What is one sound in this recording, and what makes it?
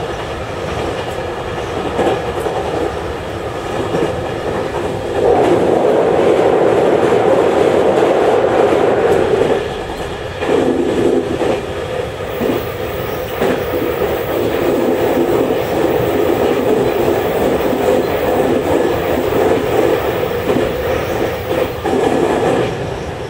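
A train rumbles steadily along the tracks, growing louder for a while.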